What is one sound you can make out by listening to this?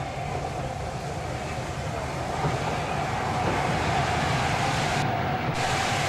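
Steam hisses from a locomotive.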